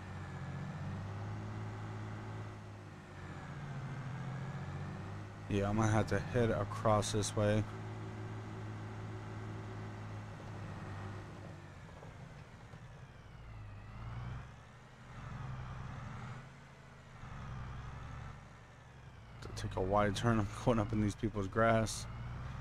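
A tractor engine hums steadily, rising and falling slightly in pitch.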